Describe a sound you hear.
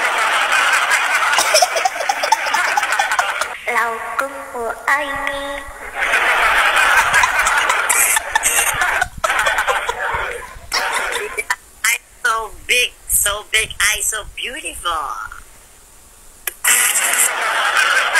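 A young man laughs loudly over an online call.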